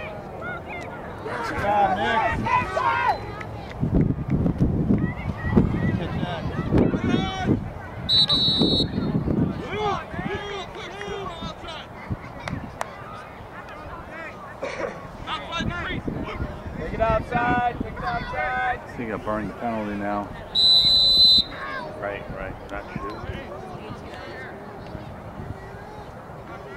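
Players shout and call out across an open field.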